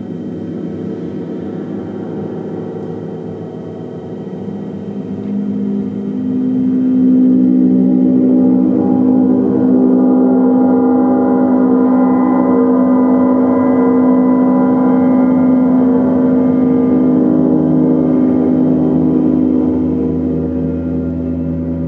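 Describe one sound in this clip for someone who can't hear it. A large gong hums and shimmers in deep, swelling waves, echoing through the room.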